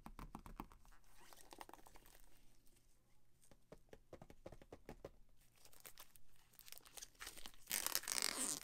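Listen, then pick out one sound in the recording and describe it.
Gloved hands tap and handle a box.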